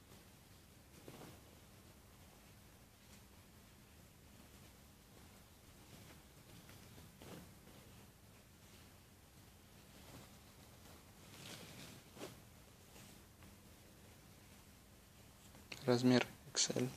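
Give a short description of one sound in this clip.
Cloth rustles softly as hands handle fabric.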